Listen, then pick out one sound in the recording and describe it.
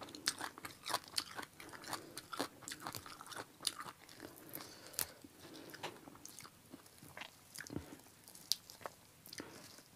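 Herbs rustle and snap between a woman's fingers.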